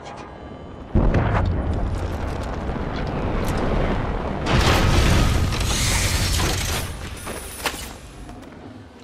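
A supply pod crashes down with a loud rushing roar that slowly fades.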